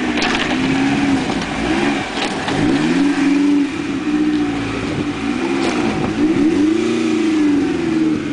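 Tyres crunch over loose stones.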